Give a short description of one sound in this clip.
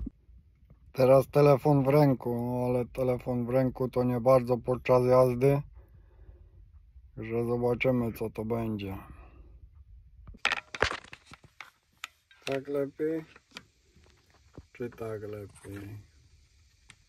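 A man talks calmly, close to a phone's microphone.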